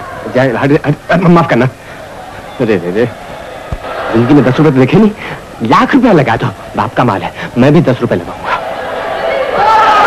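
Men talk in a crowd nearby.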